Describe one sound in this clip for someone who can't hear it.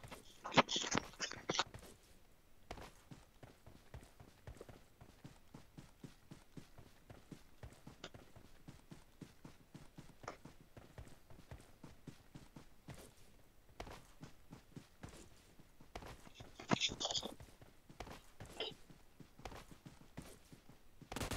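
Footsteps crunch quickly over grass.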